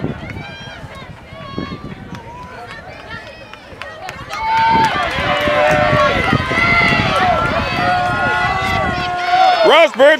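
A crowd of spectators cheers and shouts outdoors, growing louder from about four seconds on.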